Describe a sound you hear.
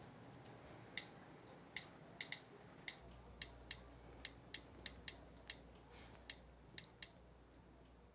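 Fingers tap quickly on a phone's touchscreen.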